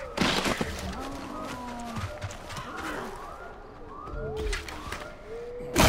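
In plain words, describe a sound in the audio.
A wild dog yelps and whines in pain.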